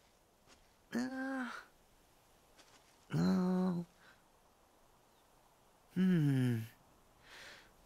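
A young man grunts with effort several times.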